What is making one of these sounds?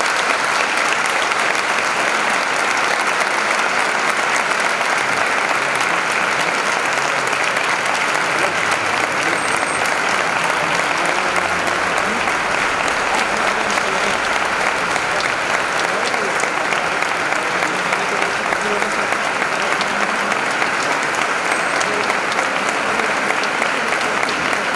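A large crowd claps and applauds steadily in an echoing hall.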